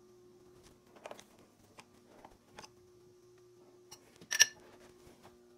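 Metal parts click and clank as a vise is tightened.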